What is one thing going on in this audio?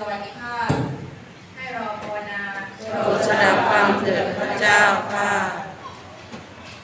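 A young woman reads out through a microphone in a room with echo.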